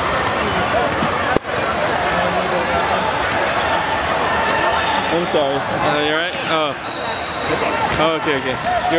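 A crowd chatters and shouts in a large echoing gym.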